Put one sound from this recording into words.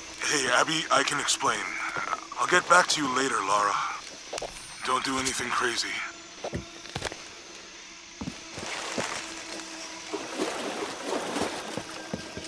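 Footsteps crunch on dry earth and leaves.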